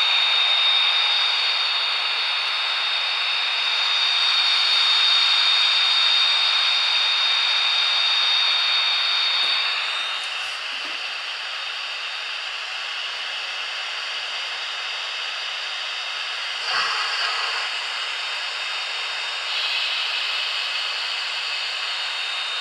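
A model steam locomotive hums and whirs steadily as it rolls along the track.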